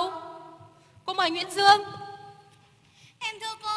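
A woman speaks clearly through a microphone.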